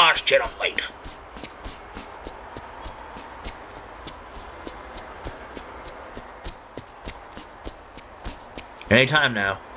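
Soft footsteps creep along a hard pavement.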